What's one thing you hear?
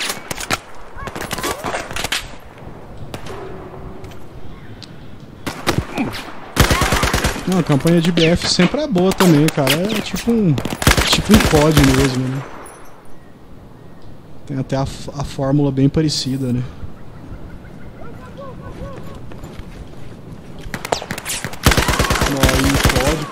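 Rapid bursts of gunfire crack sharply.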